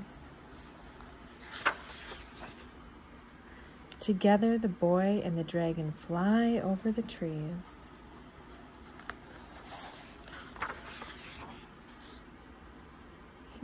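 Book pages rustle as they are turned.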